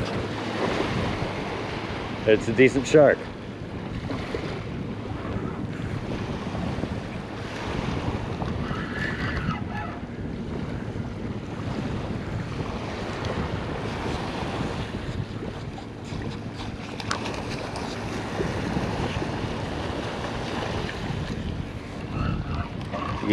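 Small waves lap gently at a shore.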